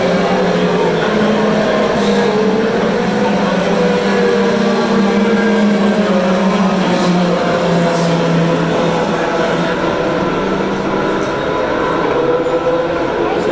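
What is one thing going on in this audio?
Race car engines roar and whine as cars speed past on a track.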